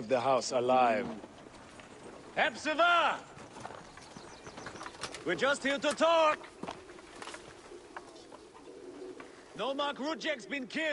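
A young man shouts angrily close by, in short bursts.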